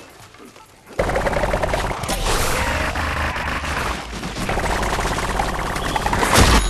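Rapid cartoonish shots pop in quick succession.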